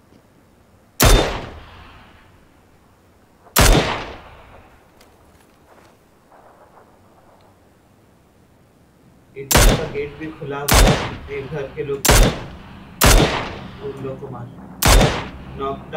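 A rifle fires loud, echoing shots one at a time.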